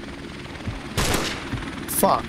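A rifle fires a single loud shot.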